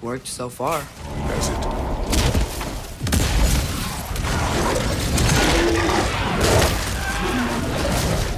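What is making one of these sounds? Heavy stone crashes and rumbles nearby.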